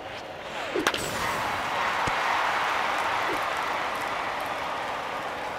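A stadium crowd cheers.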